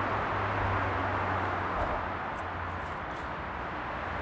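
Footsteps crunch on gravel, moving away.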